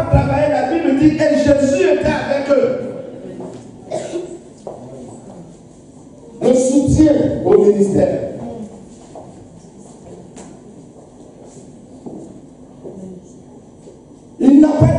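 A man preaches with animation into a microphone over loudspeakers in an echoing room.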